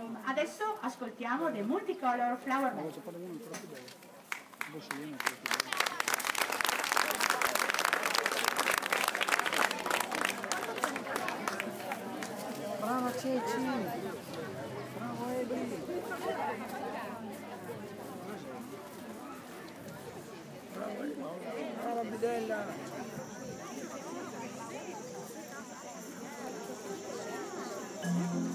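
A large group of children sing together outdoors.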